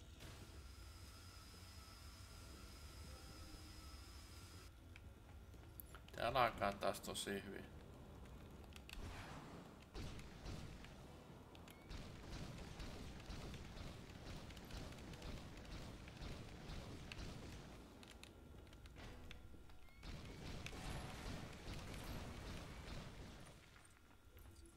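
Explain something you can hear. Flames crackle steadily.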